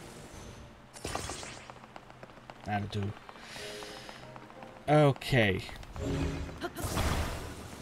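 A magical whoosh bursts out briefly.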